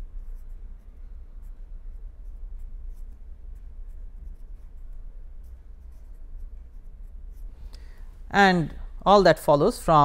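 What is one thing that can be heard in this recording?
A felt-tip pen squeaks softly across paper.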